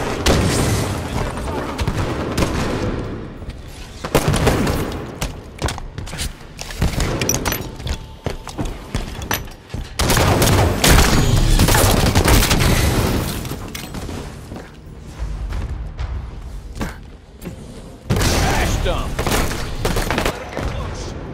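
Gunshots crack and rattle in quick bursts.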